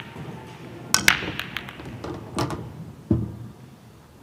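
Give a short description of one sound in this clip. Pool balls clack against each other and roll across the table.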